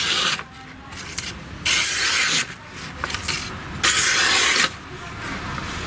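A knife scrapes and rustles against sandpaper.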